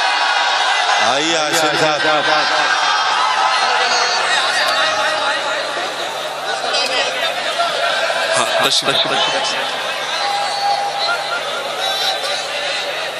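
A man speaks forcefully into a microphone, heard over loudspeakers.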